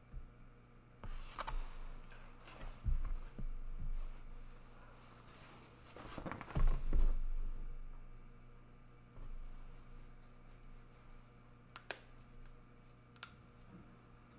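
Paper rustles and slides under a hand.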